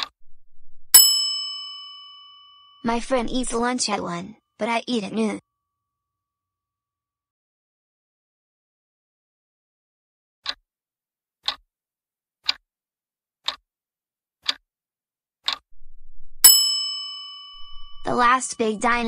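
A bell chimes brightly and rings out.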